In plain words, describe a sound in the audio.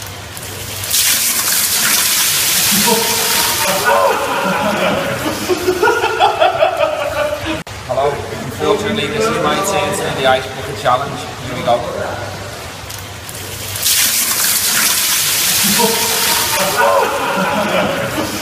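Ice water splashes down from a bucket onto a man.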